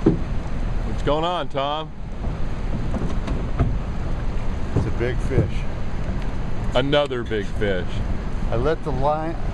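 A man speaks close by, in a calm voice.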